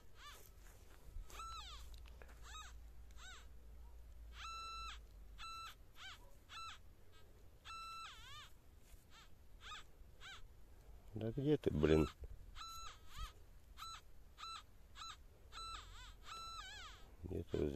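A metal detector beeps and warbles in short bursts as it sweeps over the ground.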